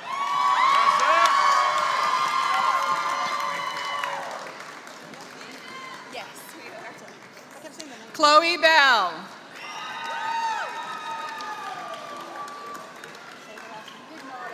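A crowd cheers and whoops in a large echoing hall.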